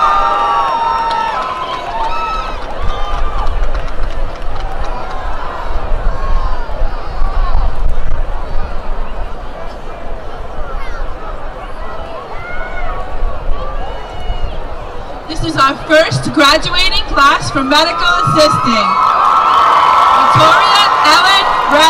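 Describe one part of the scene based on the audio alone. A large crowd of young men and women cheers and shouts outdoors.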